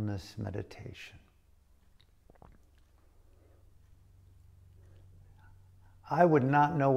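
An older man speaks calmly and close to the microphone, with pauses.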